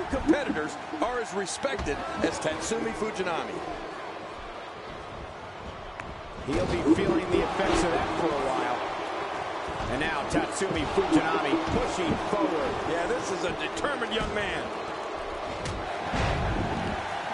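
Bodies thud and slam against a wrestling ring's mat.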